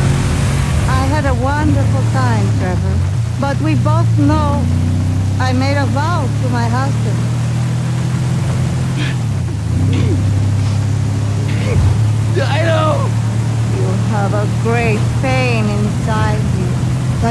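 A woman talks calmly.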